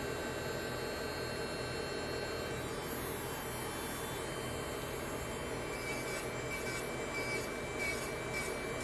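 An electric nail drill whirs with a steady high whine.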